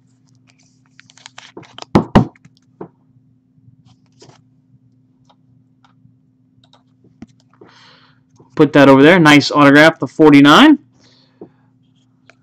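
Plastic card cases click and rustle as they are handled.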